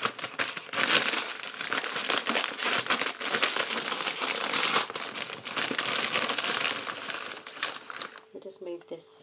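A plastic bag crinkles and rustles loudly close by.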